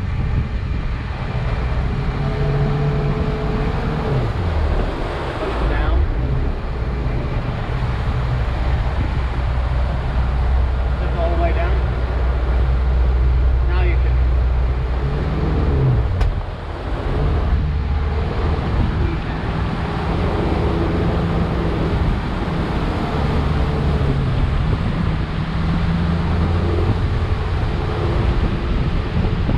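Water rushes and splashes against the hull.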